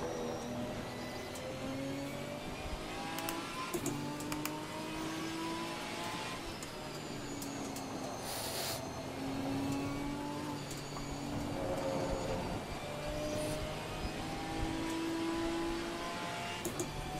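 A racing car engine drones and shifts pitch as it changes gears.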